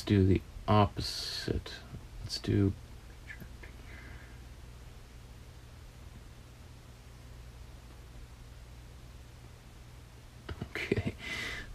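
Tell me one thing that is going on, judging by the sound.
A man speaks calmly into a close microphone, in short bursts with a long pause.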